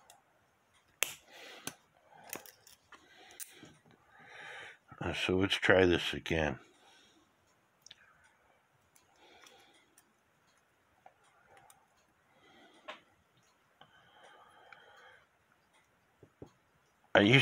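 Small metal parts click and rattle as a clock movement is handled up close.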